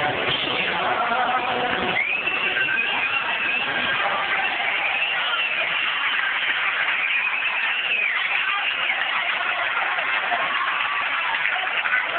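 A rock band plays loudly and distorted on a stage in a large echoing hall.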